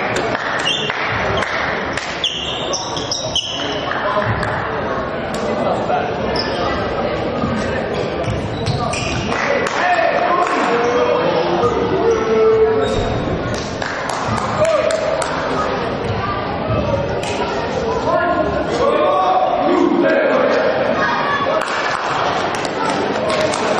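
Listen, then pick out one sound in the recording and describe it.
A volleyball is struck with a hand.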